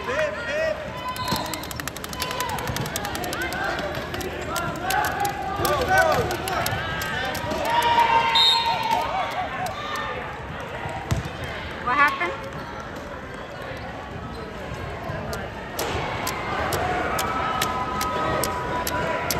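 Young players shout and call out in a large echoing gym.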